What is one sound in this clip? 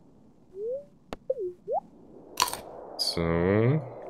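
A game character eats with a short munching sound.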